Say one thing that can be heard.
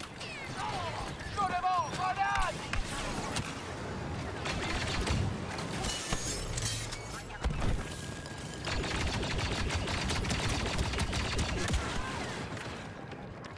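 Blaster fire crackles and zaps in rapid bursts.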